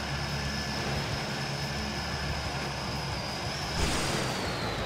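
A heavy vehicle's engine rumbles.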